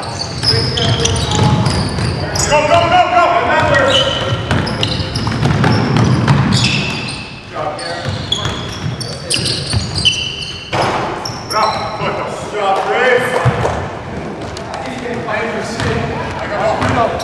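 Sneakers squeak sharply on a floor in a large echoing hall.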